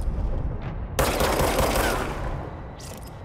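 A pistol fires a loud shot.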